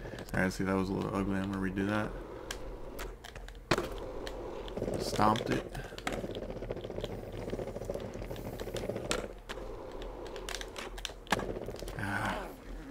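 Skateboard wheels roll over pavement.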